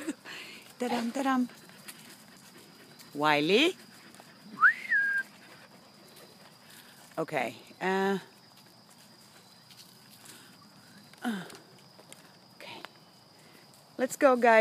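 Dogs whine and yelp in short bursts nearby.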